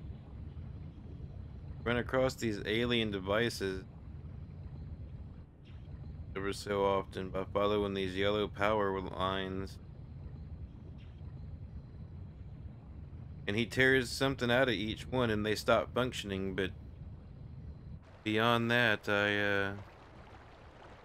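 A small submarine's motor hums low and steady underwater.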